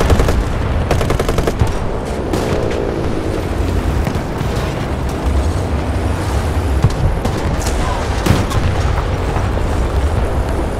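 A tank engine rumbles and clanks steadily.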